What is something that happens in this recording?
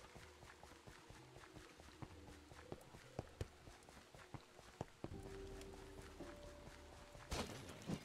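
Footsteps tread softly on the ground.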